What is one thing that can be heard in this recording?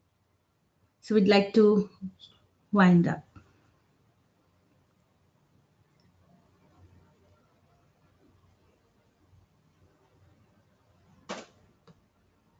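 A woman speaks calmly into a microphone, heard as if over an online call.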